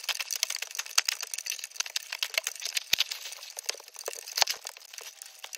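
A snow shovel scrapes across a snowy floor.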